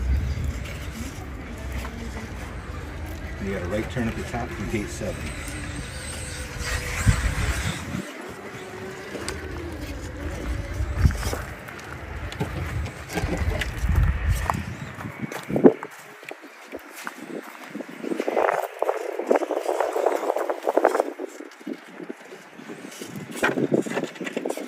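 Plastic tyres scrape and grind on rough stone.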